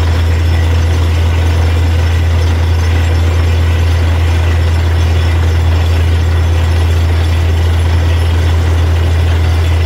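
A drilling rig's engine roars loudly and steadily outdoors.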